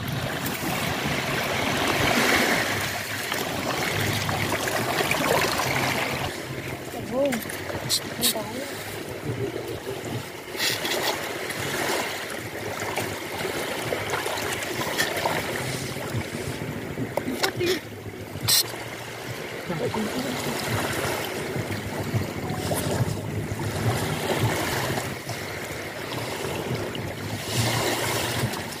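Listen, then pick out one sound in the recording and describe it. Small waves lap steadily against a sandy shore.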